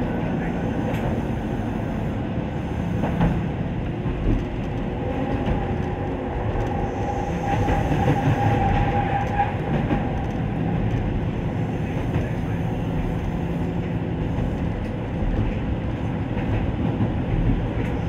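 Train wheels clack over rail joints.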